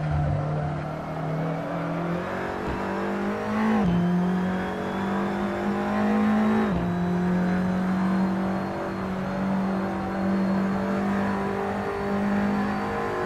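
A racing car engine roars steadily, rising in pitch and dropping sharply at each gear change.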